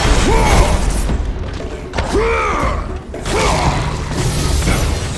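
A creature shrieks in pain.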